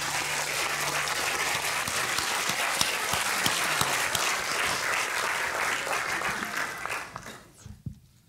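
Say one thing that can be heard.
A large audience applauds loudly in an echoing hall and then dies down.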